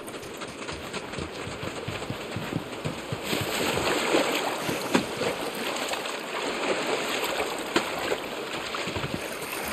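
Footsteps crunch across sand.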